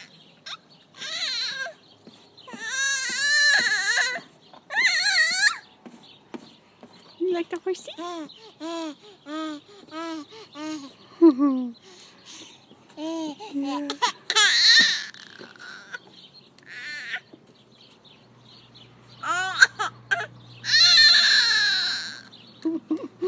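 A baby squeals and babbles with delight close by.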